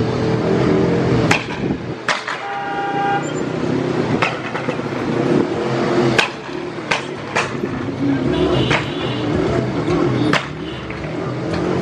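Motorcycle engines rumble and putter close by.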